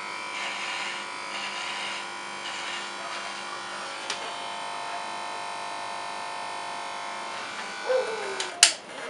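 An electric hair clipper buzzes steadily.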